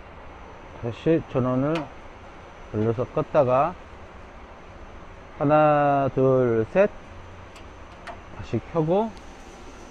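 A rotary switch clicks as it is turned.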